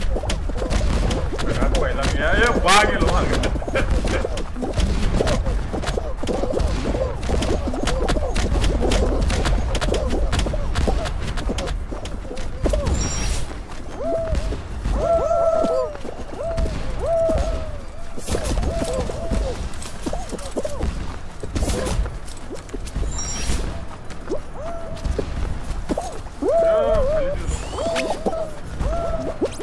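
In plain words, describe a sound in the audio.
Cartoonish game sound effects squeak and bounce as little figures jostle and run.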